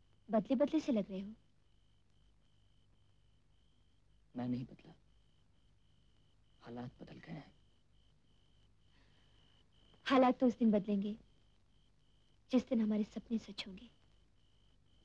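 A young woman speaks softly in short phrases, close by.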